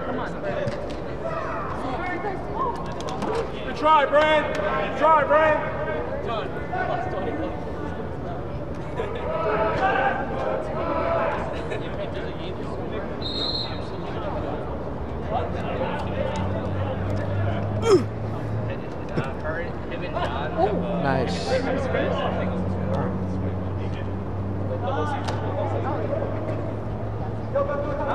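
Young men and women shout and call out to each other across a large echoing hall.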